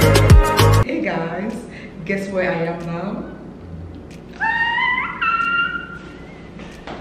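A woman laughs and squeals with delight.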